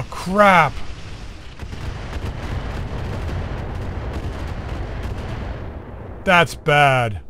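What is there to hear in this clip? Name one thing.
A loud explosion booms and rumbles, then slowly dies away.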